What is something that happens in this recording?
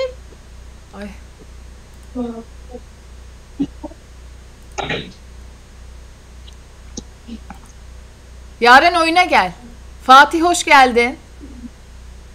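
A young woman speaks close to a microphone in short bursts, then talks with animation.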